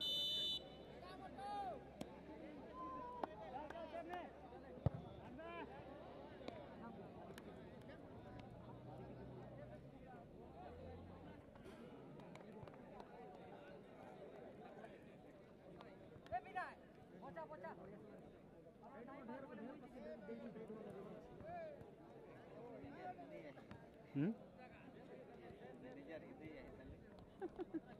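A crowd of young men chatters and calls out outdoors.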